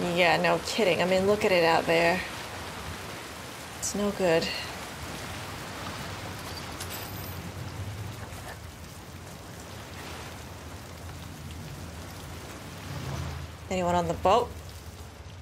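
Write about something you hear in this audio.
A young woman talks calmly and close into a microphone.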